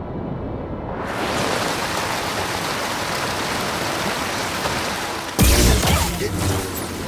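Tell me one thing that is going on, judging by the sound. A waterfall rushes loudly nearby.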